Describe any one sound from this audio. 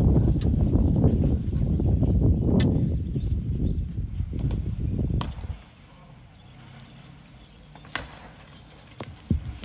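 A hand tool scrapes and knocks against rocky ground.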